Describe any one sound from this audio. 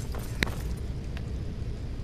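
A fire crackles in a brazier.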